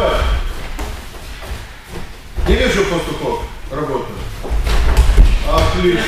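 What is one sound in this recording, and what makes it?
A body thumps onto a mat.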